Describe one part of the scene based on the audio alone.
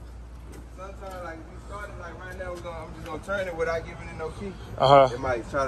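A man talks casually close by.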